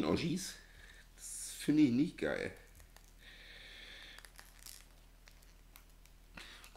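Small plastic parts click softly as they are handled.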